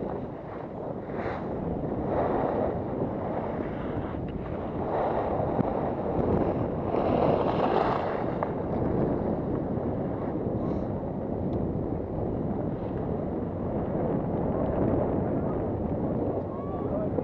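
Skis scrape and hiss over packed snow.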